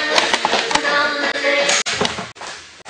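A toy radio plays a cheerful tune.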